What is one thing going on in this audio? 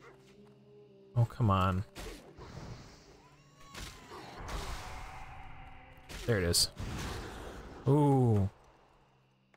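Blows land in a fight with sharp hits.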